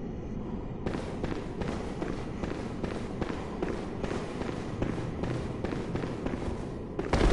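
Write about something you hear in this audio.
Heavy blows thud and slash in a close fight.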